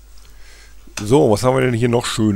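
A man speaks calmly and close into a headset microphone.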